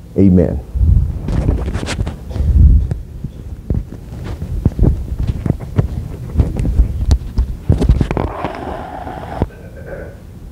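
A microphone thumps and rustles as it is handled up close.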